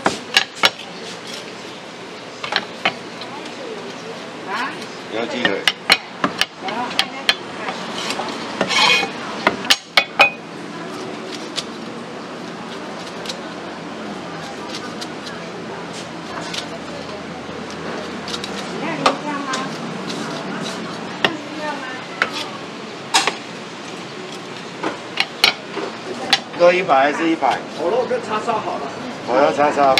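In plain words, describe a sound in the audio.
A cleaver chops through roast meat onto a wooden block with sharp thuds.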